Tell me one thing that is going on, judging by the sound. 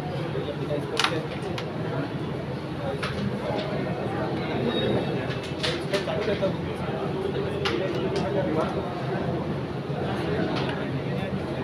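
Game pieces click sharply against each other and a wooden board.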